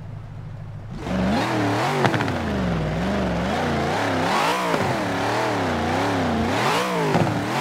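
A car engine revs up and down again and again.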